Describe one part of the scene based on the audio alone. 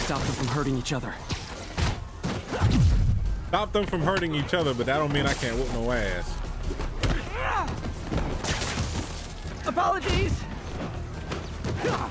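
Punches and kicks thud and smack in a brawl.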